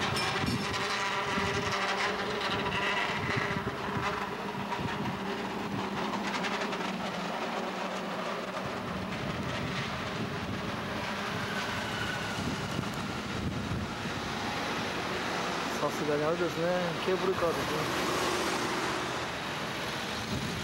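City traffic hums steadily outdoors.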